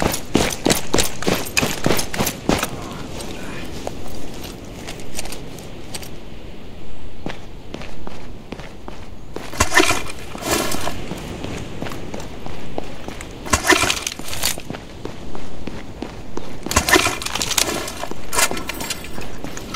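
Quick footsteps run on hard pavement.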